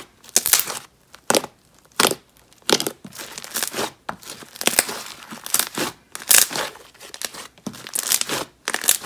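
Hands squish and squeeze soft, sticky dough in short, wet bursts.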